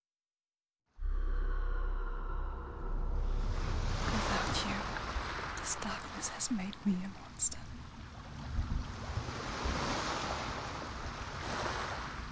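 Waves wash and roar against a rocky shore.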